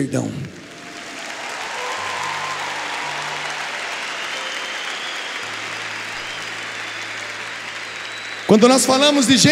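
A large crowd applauds in an echoing hall.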